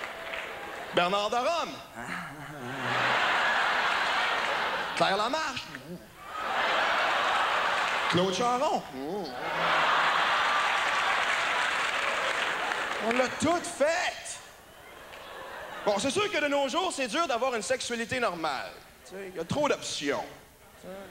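A man speaks with animation into a microphone in a large hall.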